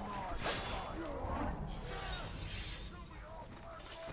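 Blades clash and strike in a close fight.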